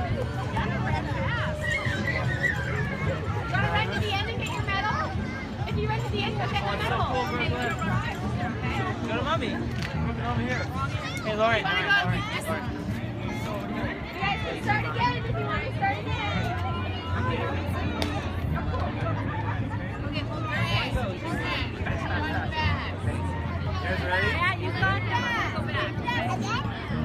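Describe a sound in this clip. Several women call out encouragingly.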